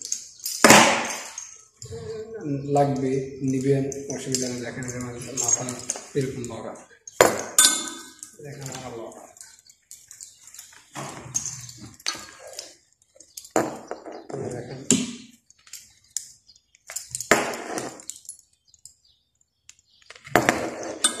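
Metal clips and buckles clink against each other.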